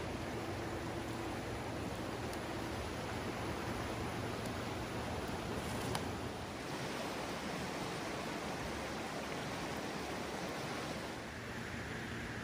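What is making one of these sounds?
A fast river rushes and roars over rocks.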